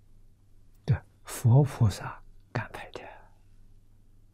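An elderly man speaks calmly and warmly, close to a microphone.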